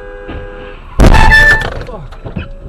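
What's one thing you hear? A car crashes into another car with a loud bang.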